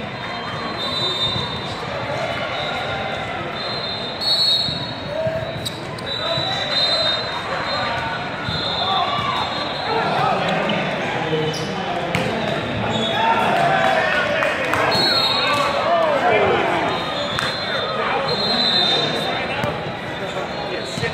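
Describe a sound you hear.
Sneakers squeak on a sports floor.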